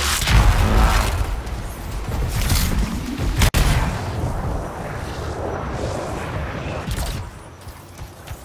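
Electric energy crackles and buzzes around an armoured figure.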